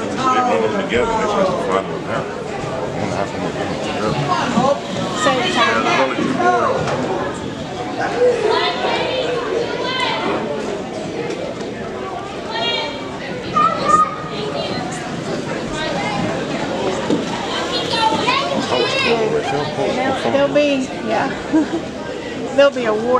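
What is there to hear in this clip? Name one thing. Roller skate wheels roll and rumble across a wooden floor.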